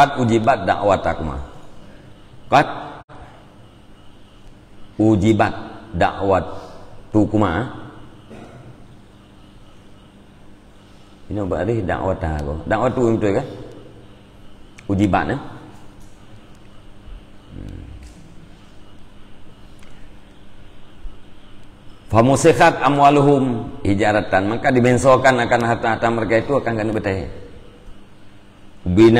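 A middle-aged man speaks calmly into a close microphone, in bursts with pauses.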